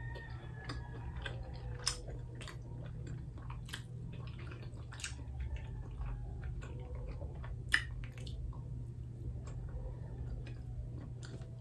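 A young woman chews and smacks her lips while eating.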